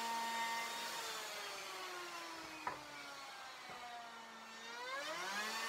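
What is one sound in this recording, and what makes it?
A power router motor winds down, its pitch sinking.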